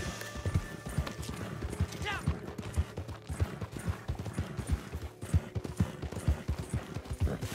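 Horses gallop with hooves thudding on a dirt trail.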